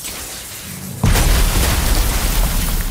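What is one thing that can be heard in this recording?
Ice shatters with a sharp crash.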